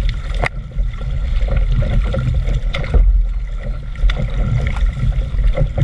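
A paddle dips and splashes in the water.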